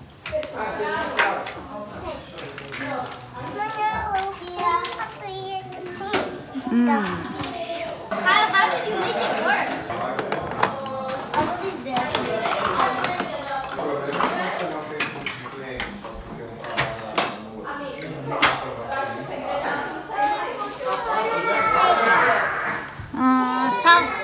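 Plastic toys clack and rattle.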